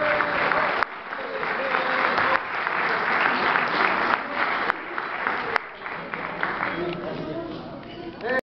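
A band of guitars and violins plays in a large hall.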